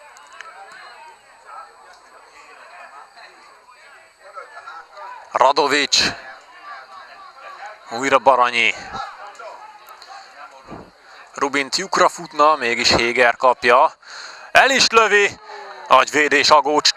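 A small crowd murmurs and calls out faintly in the open air.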